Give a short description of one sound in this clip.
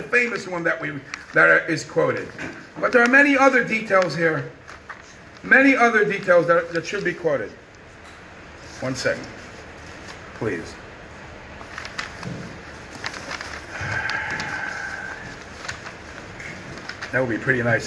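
A middle-aged man speaks in a sing-song, chanting voice close to a microphone.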